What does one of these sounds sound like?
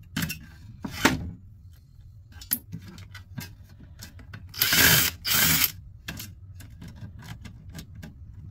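Metal parts clank and click as they are handled.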